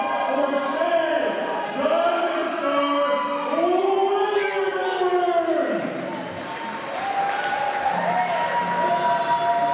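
A man announces loudly over a loudspeaker in a large echoing hall, drawing out his words.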